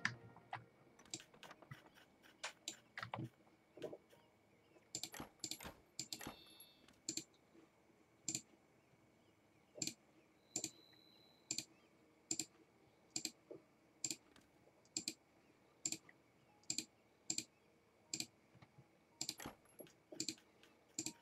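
Short soft clicks of a game interface sound at a steady pace.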